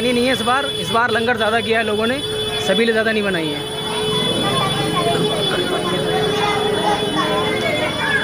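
A motor scooter engine hums slowly nearby.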